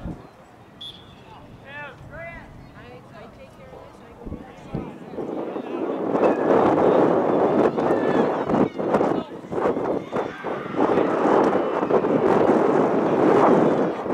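Young men call out to each other across an open field, distant.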